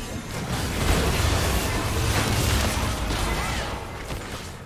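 Magic blasts and explosions crash loudly during a busy fight.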